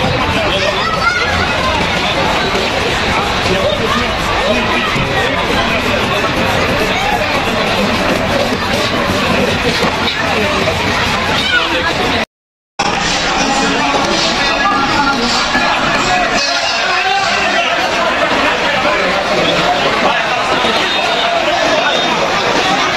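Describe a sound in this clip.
A large crowd of men and women chatters all around outdoors.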